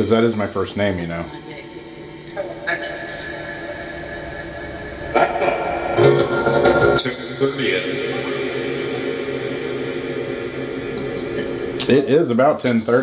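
A radio hisses and warbles through a small speaker as it is tuned.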